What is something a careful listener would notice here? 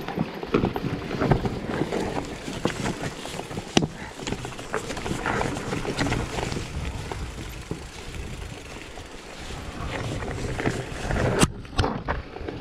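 A bicycle rattles and clunks over bumps.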